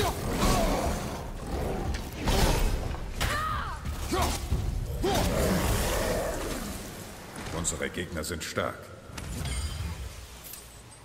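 A monster roars and snarls loudly.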